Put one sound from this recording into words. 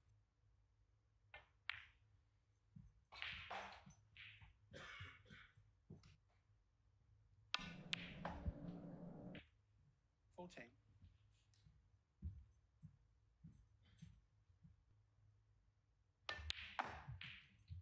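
Snooker balls click together sharply.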